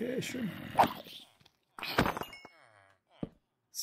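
A sword strikes a creature with sharp hits.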